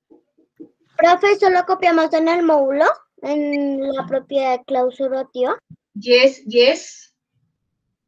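A young girl speaks with animation over an online call.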